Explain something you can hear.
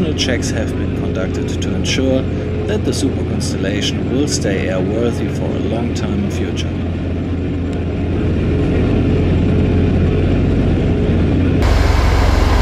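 Propeller engines drone steadily outside the aircraft.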